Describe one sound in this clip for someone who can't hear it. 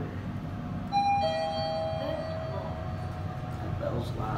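An elevator chime rings once.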